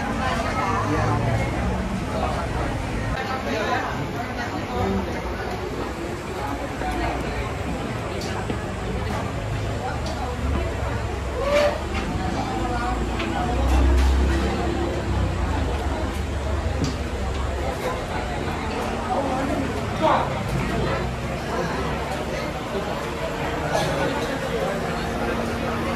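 A crowd of men and women chatter all around in a busy, echoing space.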